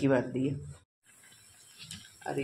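Oil sizzles and crackles in a hot pan.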